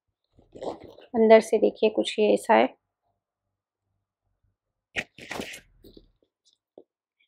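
A bag's straps and clasp rustle and clink as they are handled.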